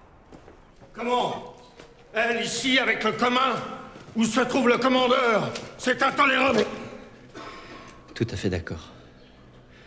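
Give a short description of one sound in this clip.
A middle-aged man speaks with urgency.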